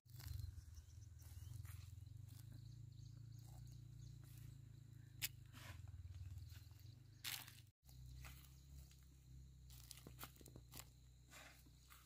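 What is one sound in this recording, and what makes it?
Seeds patter onto dry soil.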